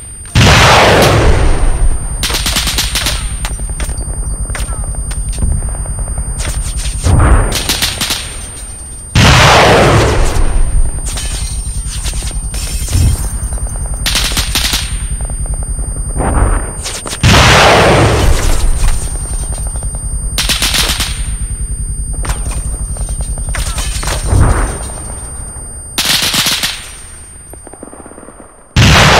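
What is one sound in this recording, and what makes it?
Heavy explosions boom one after another, loud and close.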